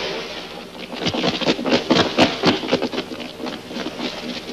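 Several men run with hurried footsteps on gravel.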